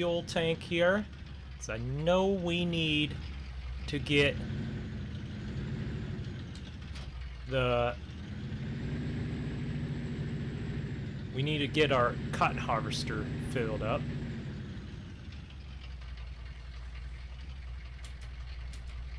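A pickup truck engine hums steadily.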